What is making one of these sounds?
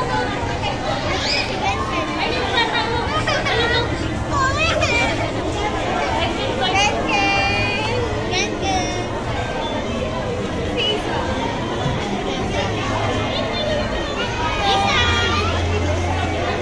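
Young children call out in high voices close by.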